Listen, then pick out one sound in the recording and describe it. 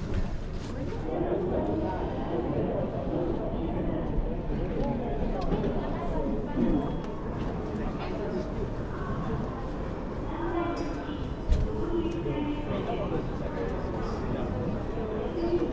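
A crowd of adults murmurs in a large echoing hall.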